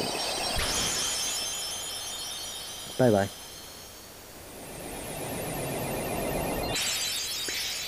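A magical burst shimmers with high, bright chimes.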